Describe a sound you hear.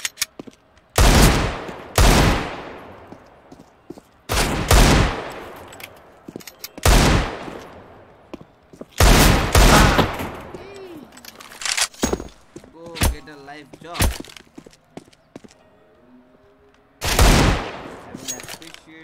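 Loud pistol shots fire one at a time and ring out.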